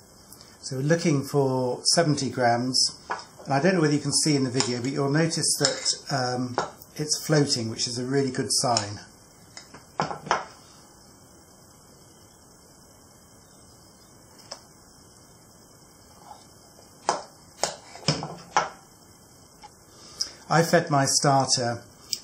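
A metal spoon scrapes and taps against a plastic bowl.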